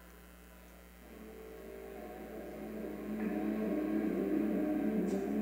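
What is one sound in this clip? Music plays through loudspeakers in a large hall, fading in and growing louder.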